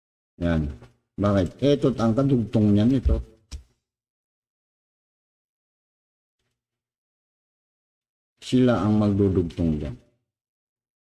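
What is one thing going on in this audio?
An elderly man speaks calmly and close by, in short bursts.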